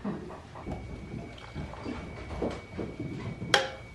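Milk pours from one metal pail into another.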